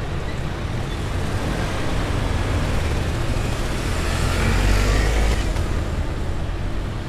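A motor scooter drives past close by, growing louder then fading.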